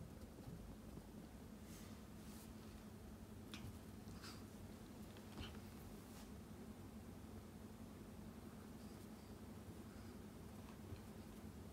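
A small dog's paws patter softly on a carpeted floor.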